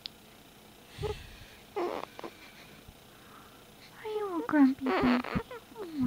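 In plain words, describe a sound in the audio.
A newborn baby whimpers and cries in short bursts close by.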